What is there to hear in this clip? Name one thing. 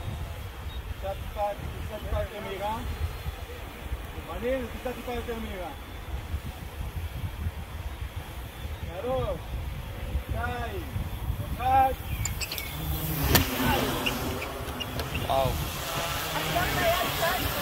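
Men talk with animation nearby.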